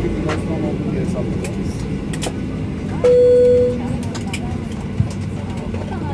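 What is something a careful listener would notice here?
A low, steady hum fills an aircraft cabin.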